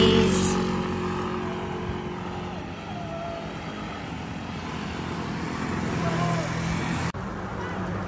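Motorcycles ride past with humming engines.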